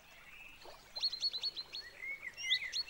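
A woodpecker taps rapidly on tree bark.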